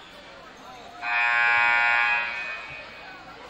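A loud buzzer sounds for about a second in a large echoing gym.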